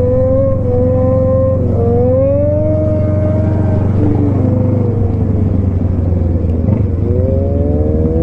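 A motorcycle engine roars steadily close by, its pitch rising and falling as it speeds up and slows down.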